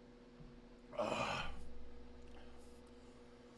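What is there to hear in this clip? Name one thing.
A man lets out a loud, long burp close to the microphone.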